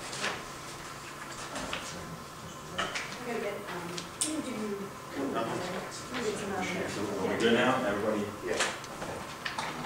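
Papers rustle as they are handed around.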